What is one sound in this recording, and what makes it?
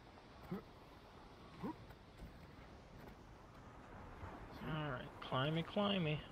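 Hands and boots scuff against rock during a climb.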